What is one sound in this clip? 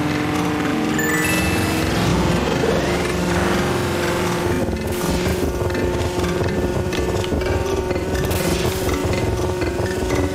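Sparks crackle and hiss as a kart drifts through a turn.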